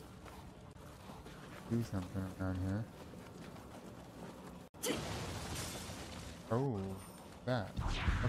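Swords clash and slash.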